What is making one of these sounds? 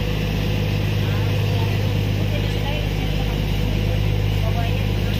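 A ship's engine hums low and steady across the water.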